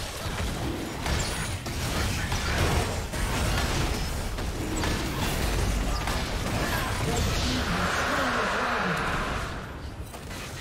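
Magic spells crackle and burst in quick succession during a fight.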